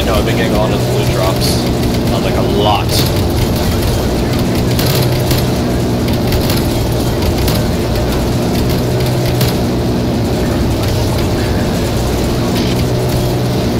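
A helicopter's rotors and engine drone steadily.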